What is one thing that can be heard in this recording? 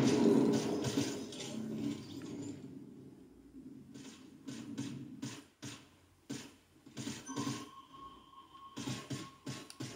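Quick footsteps patter on ground from a video game.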